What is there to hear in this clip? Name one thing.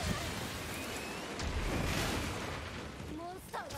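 A monster roars loudly.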